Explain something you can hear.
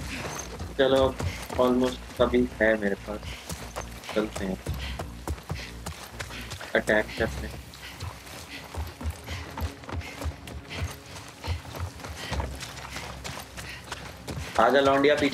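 Footsteps tread on dirt and wooden boards.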